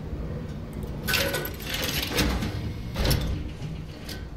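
A heavy metal door slides open with a rushing hiss.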